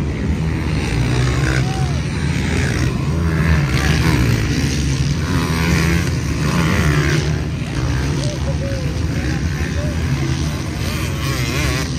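A crowd of spectators murmurs nearby.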